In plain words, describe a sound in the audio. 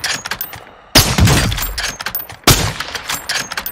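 A sniper rifle fires loud, booming shots.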